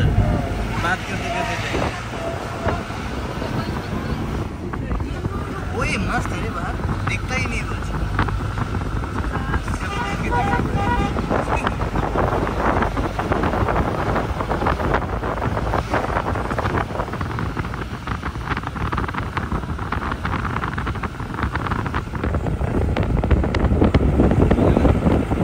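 Wind rushes past an open window.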